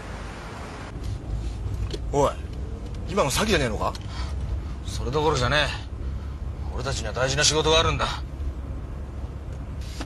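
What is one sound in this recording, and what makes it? A young man talks nearby in a car.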